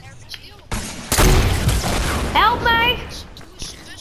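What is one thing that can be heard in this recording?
Gunshots crack loudly nearby.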